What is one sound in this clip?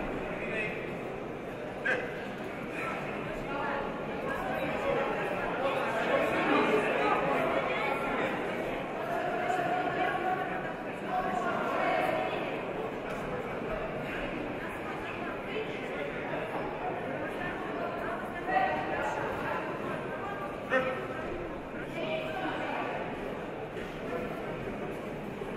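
A large crowd murmurs and chatters steadily in a big echoing hall.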